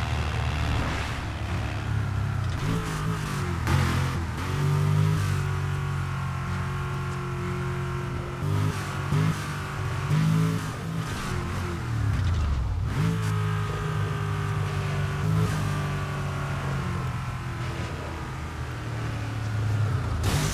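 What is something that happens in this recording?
A car engine roars and revs up and down at high speed.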